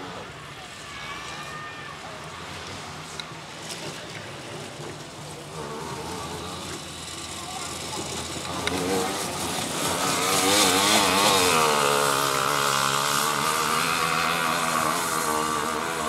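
Tyres skid and spray gravel on a dirt track.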